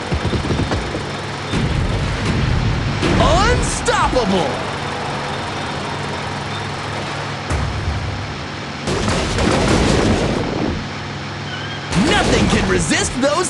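Crates and tyres crash and tumble as a truck smashes through them.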